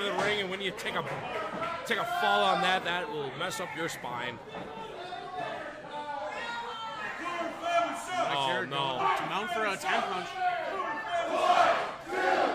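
A crowd of men and women talks and shouts in an echoing hall.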